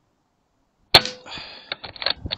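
An air rifle fires with a sharp, loud crack.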